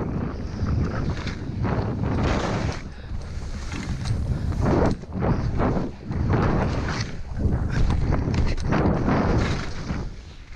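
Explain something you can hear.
Skis hiss and swish through soft snow.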